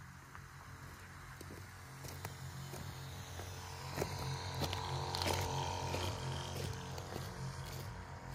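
Footsteps crunch on dry, cloddy soil.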